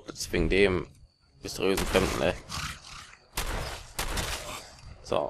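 A rifle fires sharp shots.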